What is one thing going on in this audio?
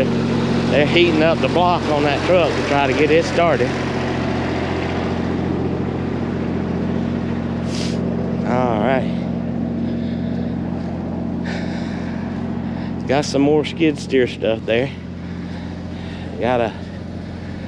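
A man talks close by, calmly, with pauses.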